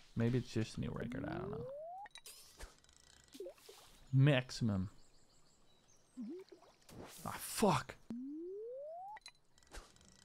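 A fishing line casts with a rising whistle.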